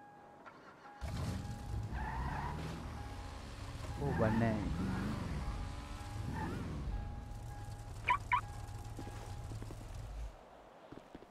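A car engine starts and idles with a low rumble.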